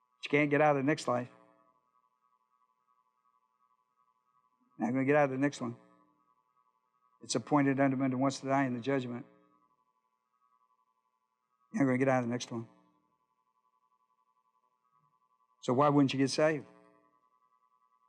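An older man speaks calmly in short phrases through a microphone, with pauses between them.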